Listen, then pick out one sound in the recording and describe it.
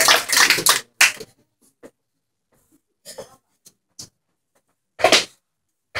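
A dancer stamps heels sharply on a wooden stage.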